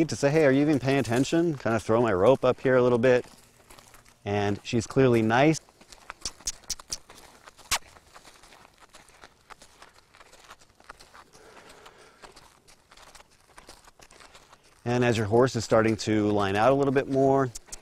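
A horse's hooves thud softly on dirt.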